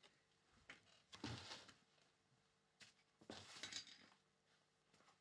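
A chair creaks and rustles as a man gets up.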